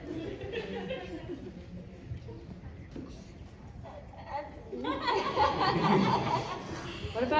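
A woman talks with animation through a loudspeaker in a large echoing hall.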